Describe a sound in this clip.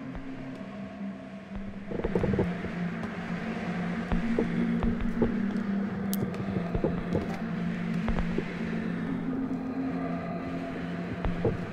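Electronic game music plays steadily with a low droning tune.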